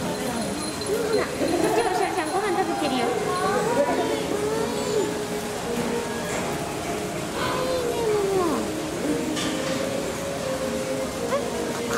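A metal bowl clinks as small monkeys reach into it.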